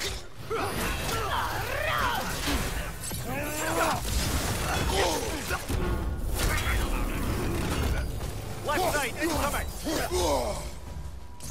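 Heavy weapons clash and thud in a fierce fight.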